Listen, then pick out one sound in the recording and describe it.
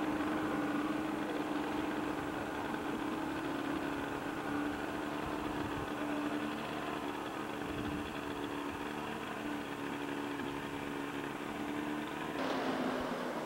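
A motorboat engine drones steadily in the distance.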